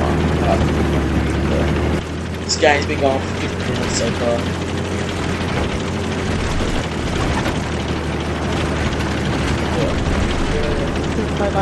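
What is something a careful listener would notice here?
A heavy vehicle engine rumbles steadily.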